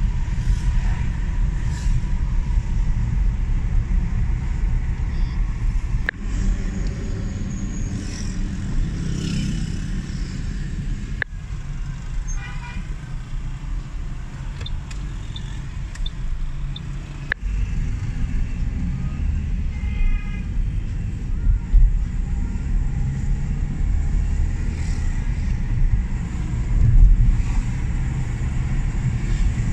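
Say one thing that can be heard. A car engine hums with a low road rumble from inside a moving car.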